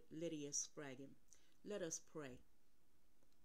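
A middle-aged woman speaks close to the microphone with feeling, in short phrases.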